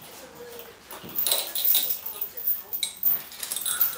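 A metal chain clinks and rattles.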